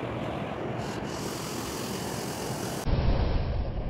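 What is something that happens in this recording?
A fast river rushes and churns.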